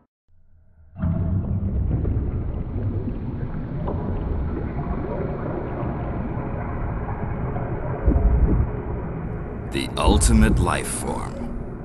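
Liquid bubbles and churns inside a tank.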